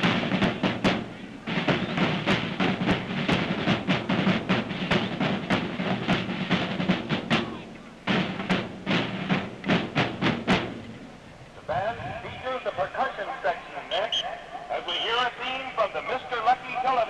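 A marching band plays brass music outdoors.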